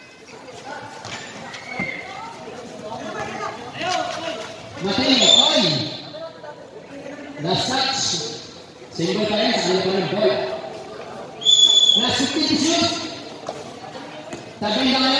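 A crowd of young spectators shouts and cheers in a large echoing hall.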